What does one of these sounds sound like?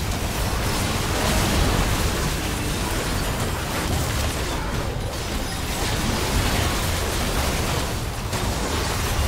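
Spell blasts and impacts crackle and boom in a fierce game battle.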